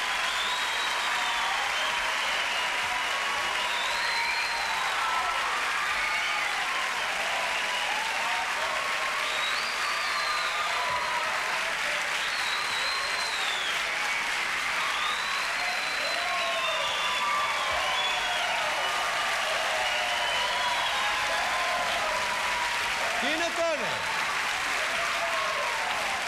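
A crowd cheers and whistles excitedly.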